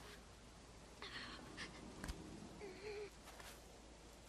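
A young girl groans in pain.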